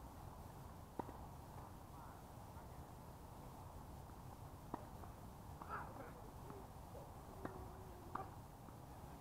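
A tennis ball is struck with a racket, with sharp pops outdoors.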